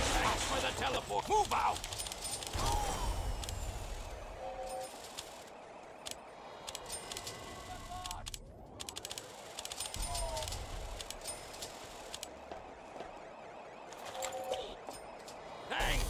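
Menu buttons click and chime.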